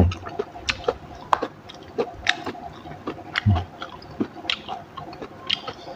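Crisp leafy greens snap and rustle in a woman's hands.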